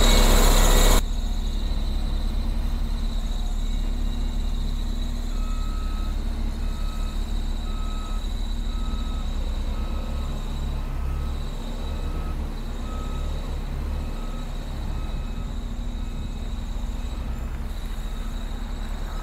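A road grader's diesel engine rumbles steadily.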